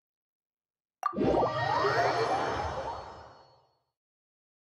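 A shimmering, whooshing video game teleport effect rises and fades away.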